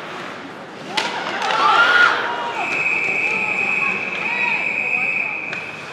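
A crowd of spectators cheers and shouts in a large echoing hall.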